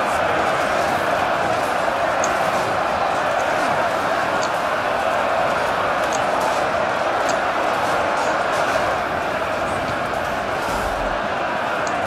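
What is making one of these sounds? A large crowd of men roars and shouts in battle.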